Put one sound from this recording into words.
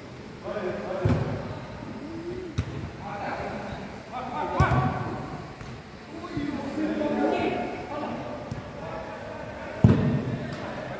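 A football is kicked with sharp thuds that echo through a large hall.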